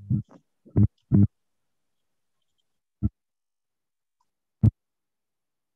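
A young woman speaks in short bursts over an online call.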